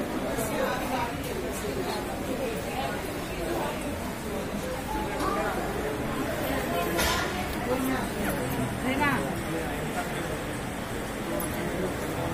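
A crowd of men murmurs and talks nearby in an echoing hall.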